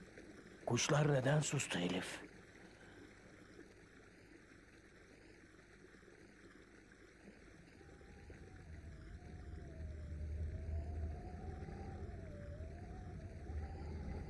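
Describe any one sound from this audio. A stream rushes over stones.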